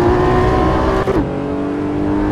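A sports car engine drops in pitch sharply as a gear changes.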